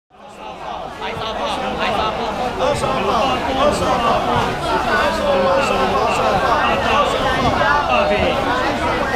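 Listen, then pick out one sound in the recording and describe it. A dense crowd of men and women chatter loudly all around.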